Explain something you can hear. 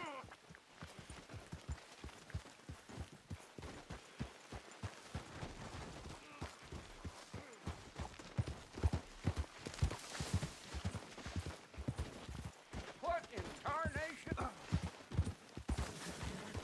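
Horse hooves thud steadily on soft ground at a trot.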